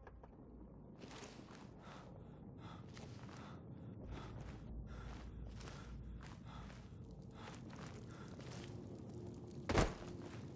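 Footsteps crunch on a stone floor in an echoing tunnel.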